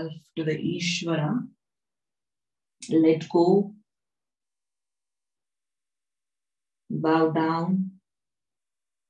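A woman speaks calmly and slowly over an online call.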